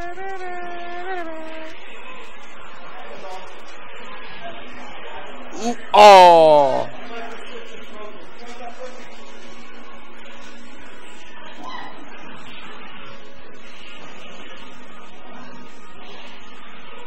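Arcade fighting game music plays steadily.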